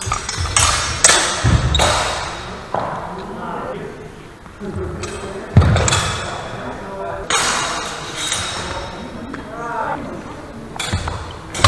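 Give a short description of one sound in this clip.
Steel swords clash and clatter.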